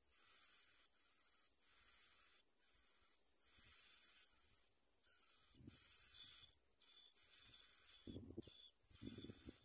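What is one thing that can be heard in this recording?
Baby birds chirp and cheep shrilly, begging close by.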